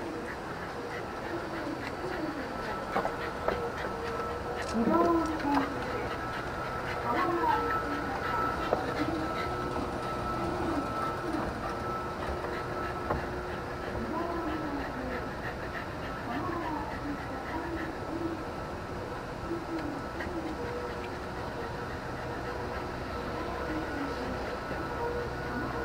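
An escalator hums and rattles steadily.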